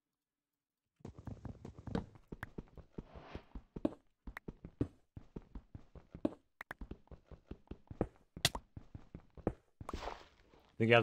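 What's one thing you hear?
A pickaxe taps repeatedly on stone in a game.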